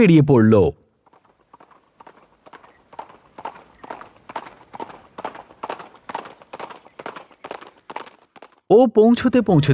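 A horse's hooves clip-clop at a steady trot.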